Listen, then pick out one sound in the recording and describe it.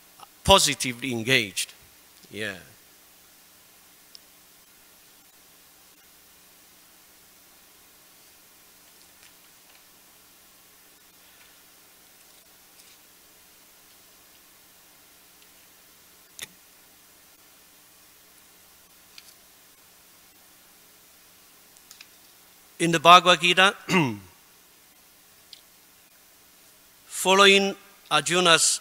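A man speaks calmly into a microphone, in short phrases with long pauses.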